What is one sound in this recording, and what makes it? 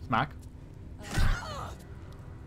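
A magical blast strikes with a sharp crackle.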